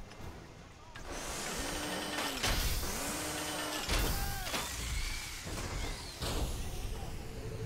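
A heavy machine whirs and whines, rising and falling in pitch.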